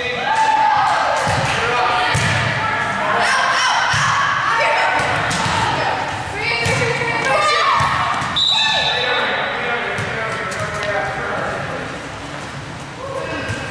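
Young women shout and call out to each other loudly in a large echoing hall.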